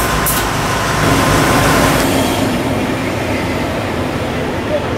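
A bus engine rumbles as the bus drives past.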